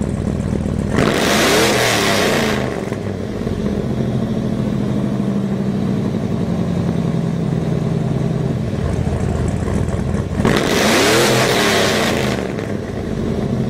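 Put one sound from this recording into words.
A diesel truck engine revs up sharply and roars, then drops back, twice.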